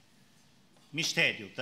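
A man chants through a microphone, echoing in a large hall.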